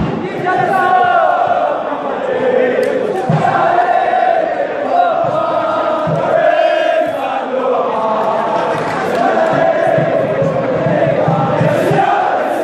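Men in the crowd cheer and shout nearby.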